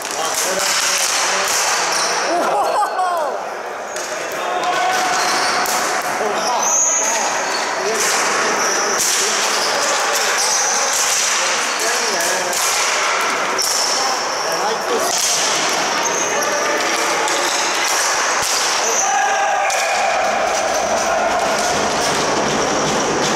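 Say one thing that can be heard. Lacrosse sticks clack together.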